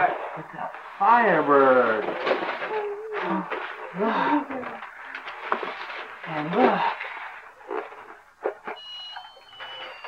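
A child tears and rustles wrapping paper.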